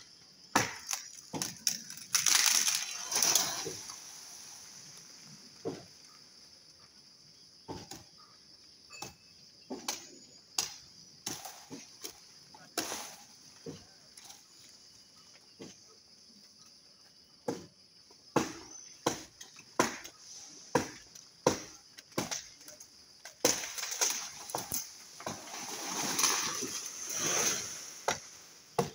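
A blade chops into wood with sharp, repeated blows.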